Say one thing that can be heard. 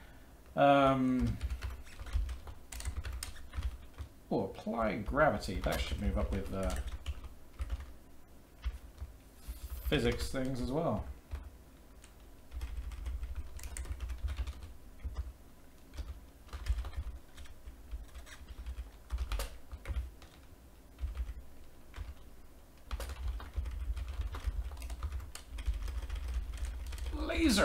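Keys clatter on a keyboard in quick bursts.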